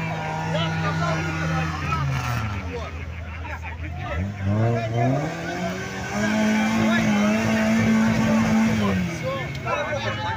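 An off-road vehicle engine revs hard, rising and falling in pitch as it churns through deep mud.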